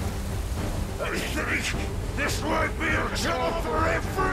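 A young man speaks tensely, close by.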